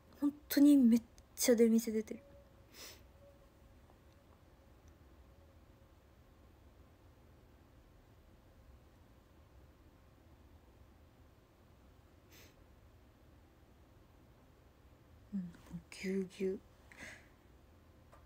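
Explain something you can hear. A young woman speaks softly close to a microphone, in short bursts with long pauses.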